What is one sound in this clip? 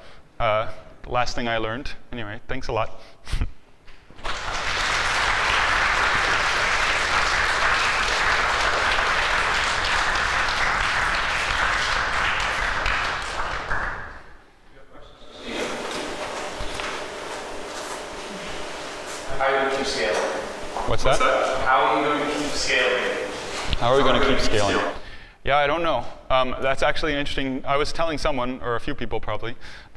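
A young man speaks into a microphone to an audience.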